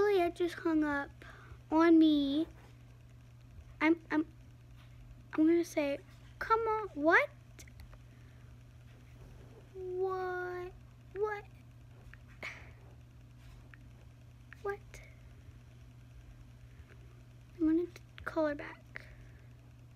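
A girl talks in short bursts close to a phone microphone.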